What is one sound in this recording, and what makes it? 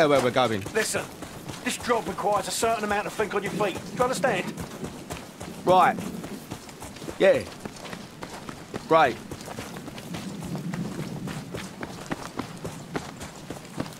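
Footsteps crunch on a rocky path.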